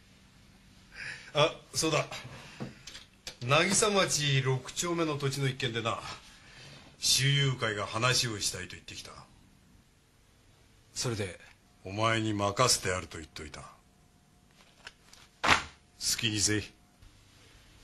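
A middle-aged man speaks calmly and firmly, close by.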